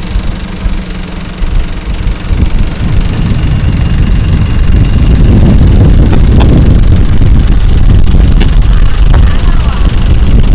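A boat engine rumbles steadily and grows louder.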